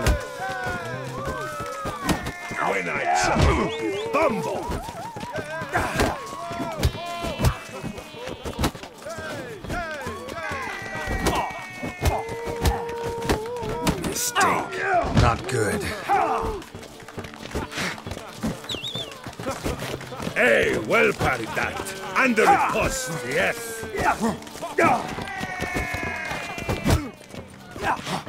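Fists thud against bodies in a brawl.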